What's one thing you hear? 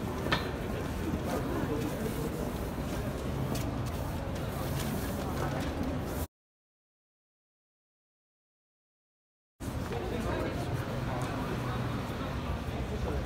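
Hands rub and smooth paper against a wall.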